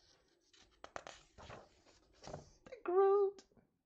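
A page of a book is turned with a papery rustle.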